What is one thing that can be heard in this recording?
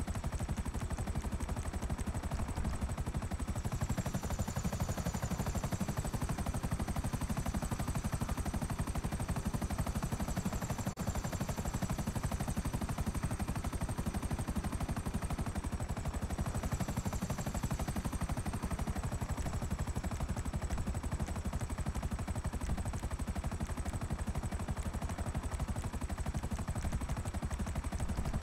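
A military attack helicopter's rotor thumps in flight.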